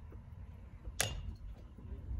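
A baseball smacks sharply into a leather glove.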